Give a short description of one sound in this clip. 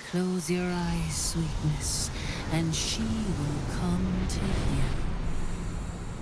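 A woman speaks softly and seductively.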